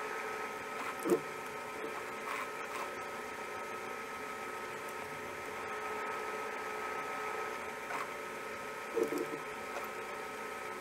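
Metal parts of a lathe clank and click as handles are turned.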